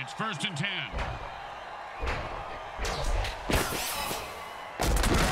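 Players collide with heavy thuds.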